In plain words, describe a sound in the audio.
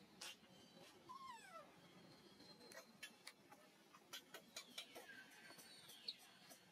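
A baby monkey squeals and cries shrilly.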